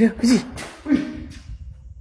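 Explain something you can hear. Footsteps scuff on a concrete floor.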